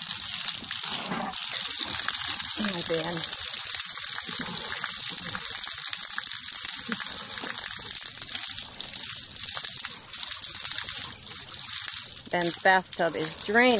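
Water sprays steadily from a hose and splashes onto the ground.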